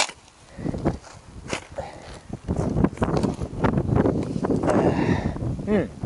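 A shovel scrapes and digs into soil.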